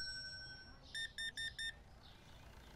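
A payment terminal keypad beeps four times in quick succession.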